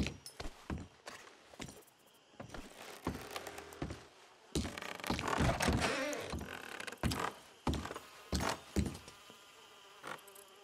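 Boots thud on creaky wooden floorboards.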